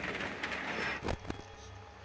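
Electronic static hisses briefly.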